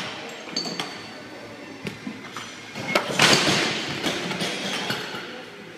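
Metal weight plates clank as a barbell is rolled on the floor.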